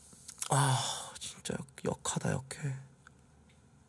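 A young man laughs loudly into a close microphone.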